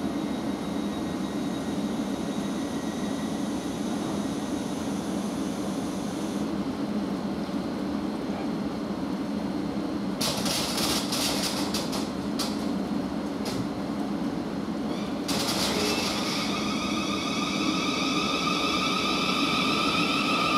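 A train engine hums steadily nearby.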